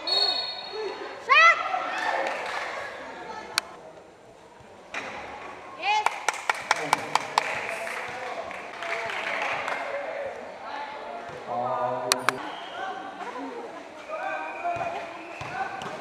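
Young spectators shout and cheer nearby outdoors.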